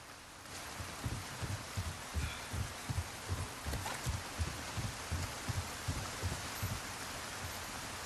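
Footsteps thud on a wooden dock.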